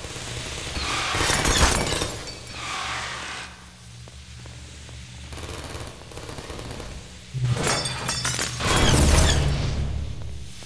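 Glass shatters loudly.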